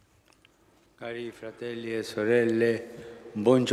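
An elderly man speaks slowly and calmly into a microphone, heard through a loudspeaker.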